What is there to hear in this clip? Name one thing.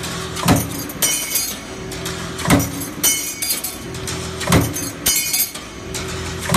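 Stamped metal parts clatter and jingle as they drop.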